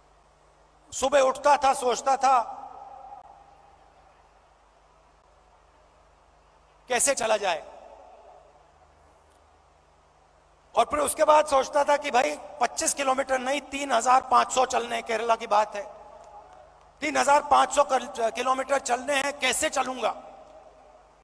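A man speaks forcefully into a microphone over a loudspeaker, in bursts with long pauses.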